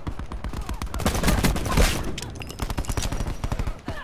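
A sniper rifle fires a loud shot.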